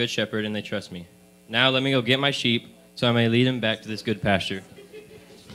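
A man reads aloud with animation through a microphone in an echoing hall.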